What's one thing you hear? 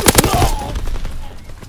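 A gun fires a short, loud burst.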